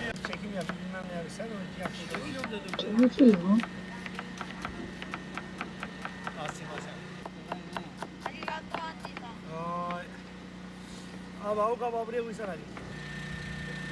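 A knife chops vegetables on a wooden cutting board.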